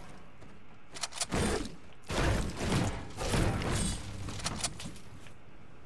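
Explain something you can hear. A pickaxe strikes hard with loud, repeated thuds.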